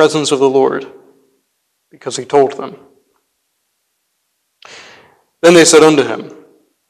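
A young man speaks calmly through a microphone, pausing between phrases.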